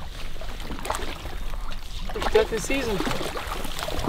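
A man wades through shallow water, splashing.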